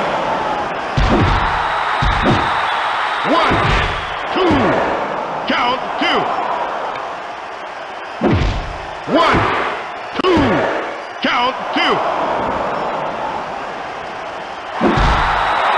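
Punches and body slams thud repeatedly.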